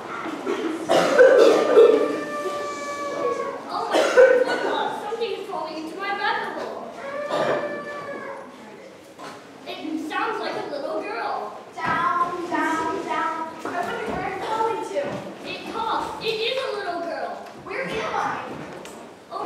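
A young child sings on a stage in a large hall.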